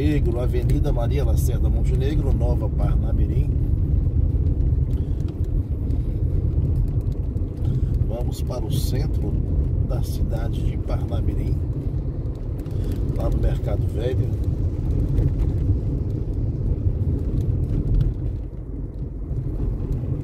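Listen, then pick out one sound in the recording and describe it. A car engine hums steadily with a low rumble while driving.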